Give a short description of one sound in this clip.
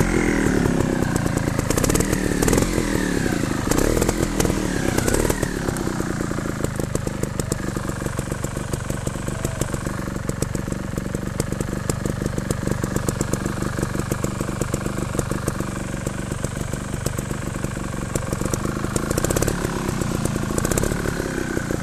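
Knobby tyres crunch over rocks and gravel.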